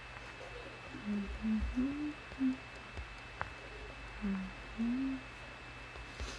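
A woman speaks softly and briefly, close by.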